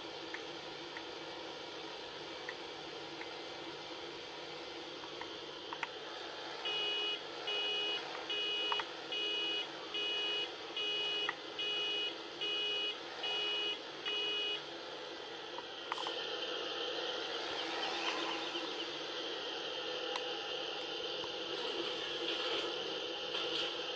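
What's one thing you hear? A tractor engine drones through a loudspeaker.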